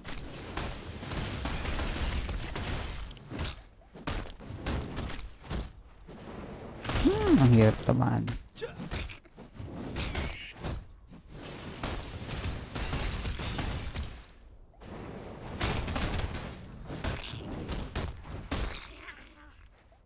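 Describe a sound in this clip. Weapons clash and slash in a fast fight.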